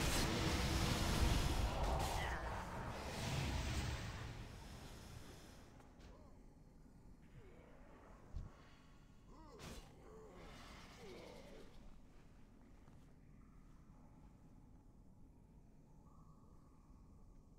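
Magical spell effects whoosh and crackle in a fast battle.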